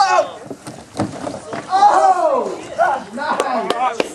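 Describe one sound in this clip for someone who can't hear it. Wrestlers thud onto the grass.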